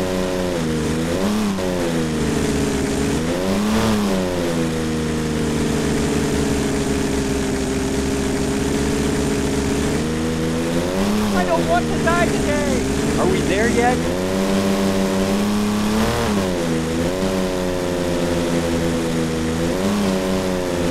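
A car engine hums steadily and revs up and down between gear changes.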